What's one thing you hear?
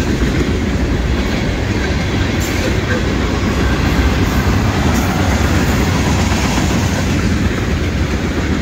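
A long freight train rumbles steadily past on the tracks.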